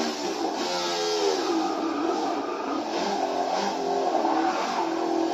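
A racing car engine revs loudly, its pitch rising and falling with the gear changes.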